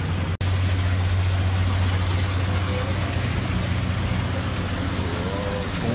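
Water bubbles and gurgles in aquarium tanks.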